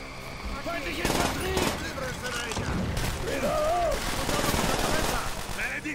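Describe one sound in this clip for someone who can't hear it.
Gunfire rattles in a game.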